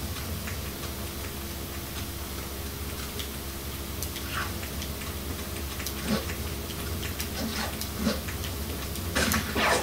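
Video game sound effects play from a television speaker.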